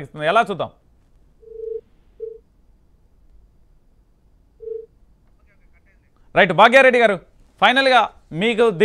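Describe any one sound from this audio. A man speaks calmly into a microphone, like a news presenter.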